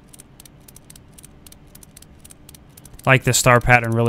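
A ratchet wrench clicks quickly as wheel nuts are loosened.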